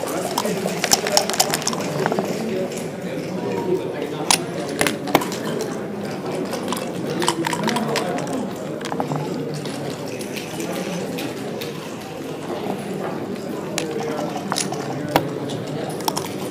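Plastic game pieces click as they are moved and stacked.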